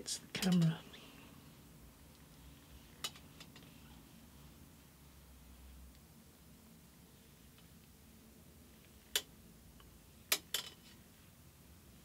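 A thin metal strip scrapes and clinks against a metal form.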